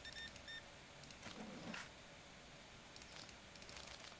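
Cash register buttons click as money is counted out.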